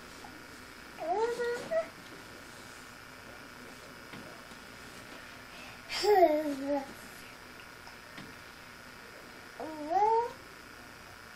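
A toddler babbles in short, high-pitched calls close by.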